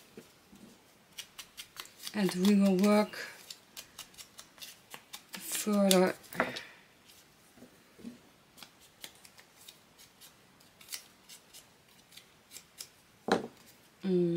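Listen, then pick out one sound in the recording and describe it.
A small stamp taps and knocks on a table.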